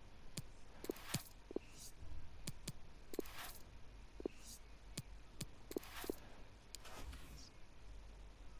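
Short menu clicks and soft swooshes sound as selections are made.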